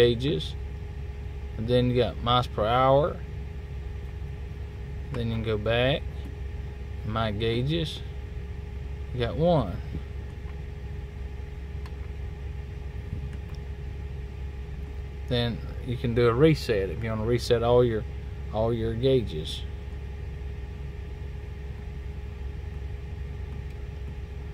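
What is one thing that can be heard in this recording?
Buttons on a steering wheel click softly.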